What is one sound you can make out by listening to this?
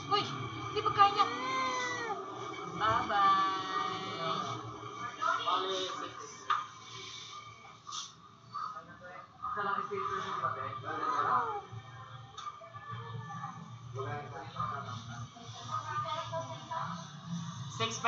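A toddler babbles and whines close by.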